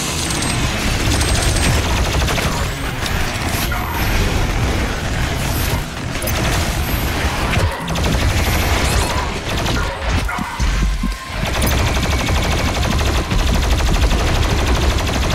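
Heavy guns fire rapidly in loud bursts.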